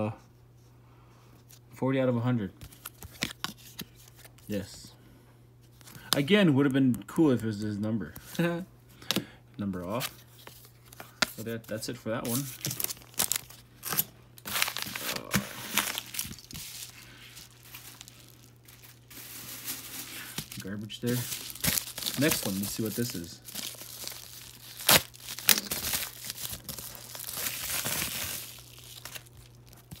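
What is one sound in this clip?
A hard plastic card case taps and clicks in hands.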